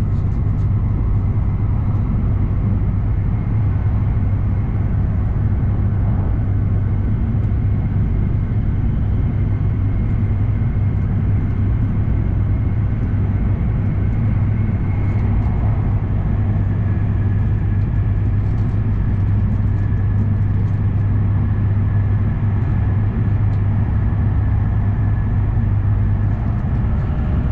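A steady low rumble and hum fills the inside of a moving train carriage.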